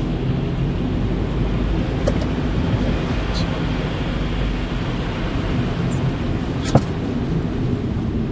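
Tyres hiss over wet slush.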